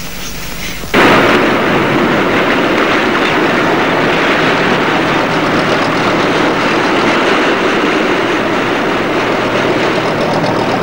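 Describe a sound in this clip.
The sea rushes and surges around a moving ship.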